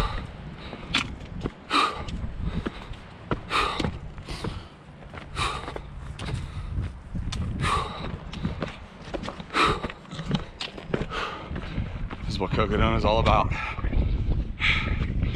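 Footsteps crunch on a rocky dirt trail.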